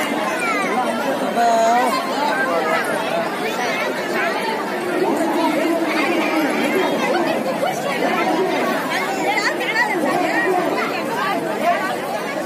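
A large crowd of men, women and children chatters loudly all around.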